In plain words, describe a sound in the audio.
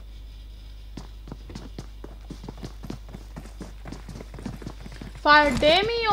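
Quick footsteps patter on hard ground.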